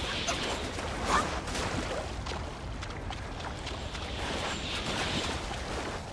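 Water splashes as a character wades through it.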